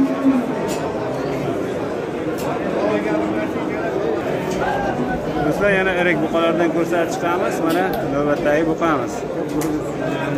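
A crowd of men talk loudly nearby.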